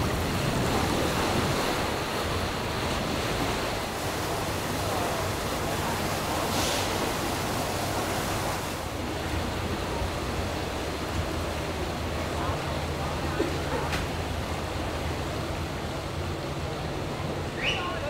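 Wind blows steadily across open water outdoors.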